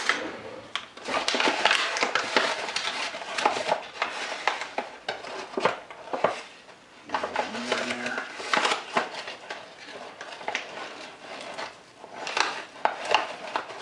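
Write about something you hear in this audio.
A metal scoop digs and rustles in a paper bag of flour.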